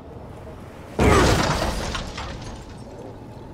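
A body lands on the ground with a heavy thud.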